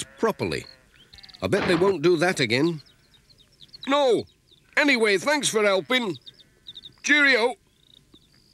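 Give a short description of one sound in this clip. A second man answers cheerfully, close by.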